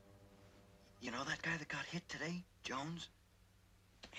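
A man speaks quietly in a low voice, close by.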